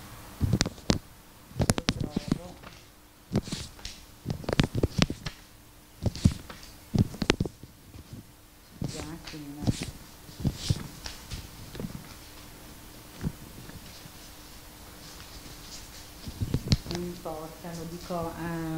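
A middle-aged woman reads aloud calmly.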